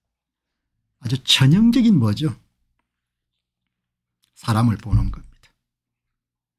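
A middle-aged man speaks with animation into a close microphone, in short bursts.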